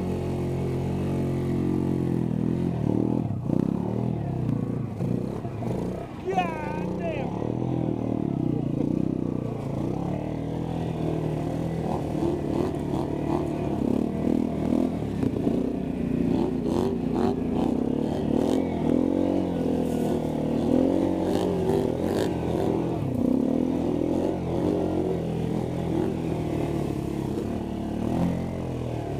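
Water splashes and churns under tyres.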